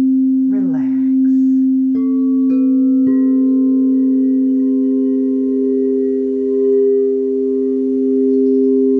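Crystal singing bowls hum with steady, overlapping ringing tones.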